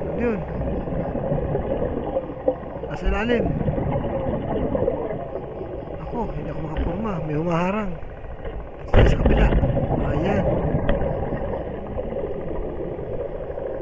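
Water rumbles and swirls, heard muffled underwater.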